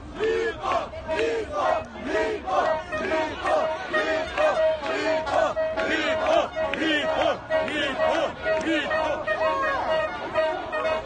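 A large crowd of men and women shouts and chants loudly outdoors.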